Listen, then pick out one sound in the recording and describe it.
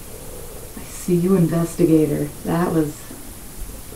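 A woman speaks casually close by.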